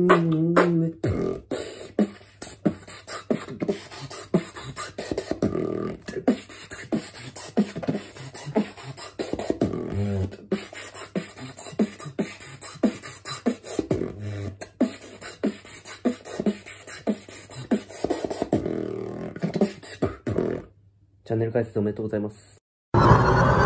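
A young man beatboxes close to a microphone with quick, punchy beats.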